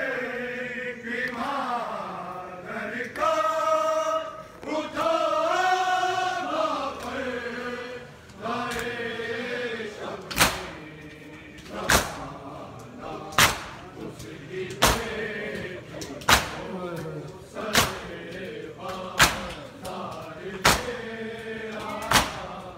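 Men chant loudly in unison.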